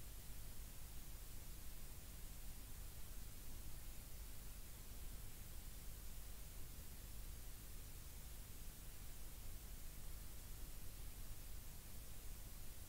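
Wind rushes steadily past outdoors.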